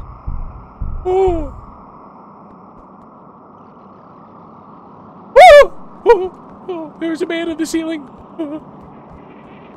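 A young man shouts in alarm close to a microphone.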